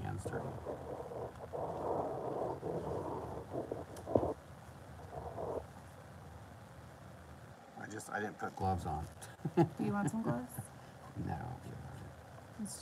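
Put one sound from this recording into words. A stick scrapes and smears thick paint across a board.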